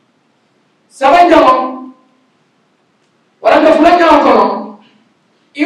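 A man speaks with emphasis into a microphone, in short phrases with pauses.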